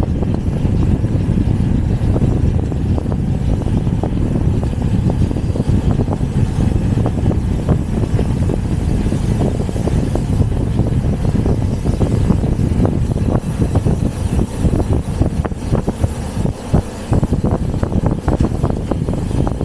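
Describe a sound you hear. Wind rushes loudly past, as heard while riding outdoors.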